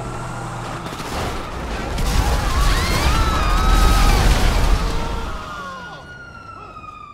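Explosions boom loudly with crashing debris.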